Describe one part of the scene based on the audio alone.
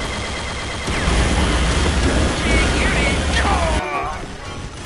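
A weapon fires a humming energy beam.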